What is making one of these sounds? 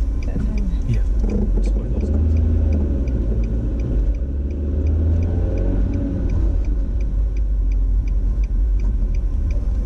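A car engine hums steadily with road rumble from inside the car.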